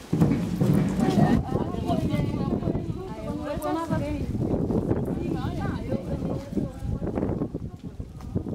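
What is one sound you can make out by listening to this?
A crowd of adults chatters outdoors.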